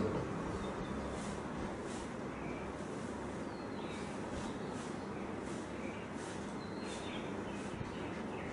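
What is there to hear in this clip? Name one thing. A pen scratches on newspaper.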